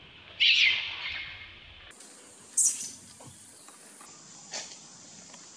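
A baby monkey screeches loudly in short, shrill bursts.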